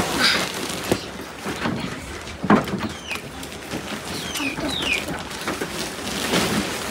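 Young girls chatter and squeal close by.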